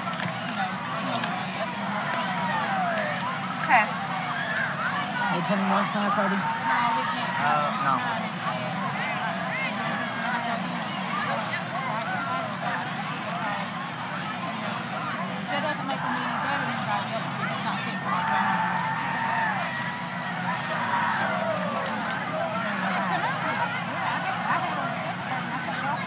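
Young men talk among themselves nearby.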